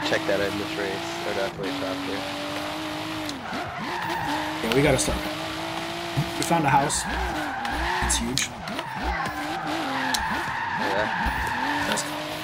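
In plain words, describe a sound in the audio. A car engine hums and revs steadily.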